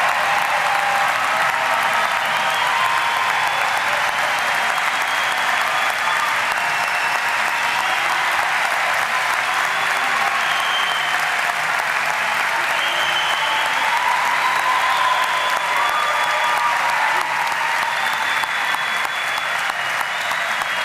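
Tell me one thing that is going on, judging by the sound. A large crowd cheers and chatters loudly in a big echoing hall.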